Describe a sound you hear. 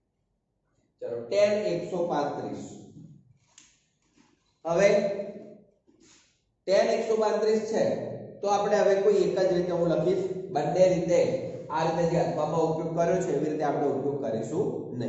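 A man speaks calmly and clearly, close by.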